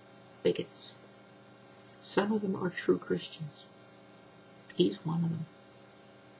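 A middle-aged woman speaks calmly and close by, in short phrases.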